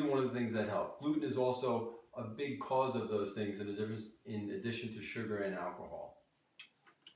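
A man speaks calmly and clearly to the listener.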